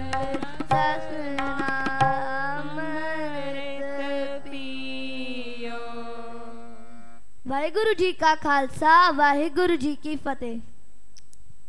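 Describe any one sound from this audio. A woman sings through a microphone.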